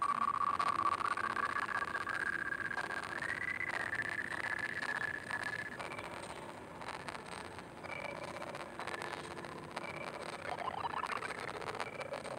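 Short game chimes ring as points are scored.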